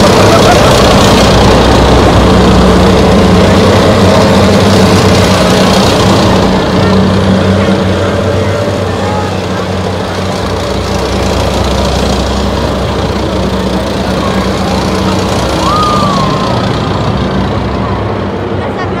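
Tracked armoured vehicles rumble and clatter past close by.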